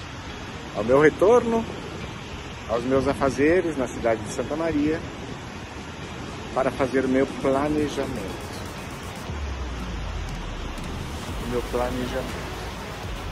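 A middle-aged man talks casually, close to the microphone.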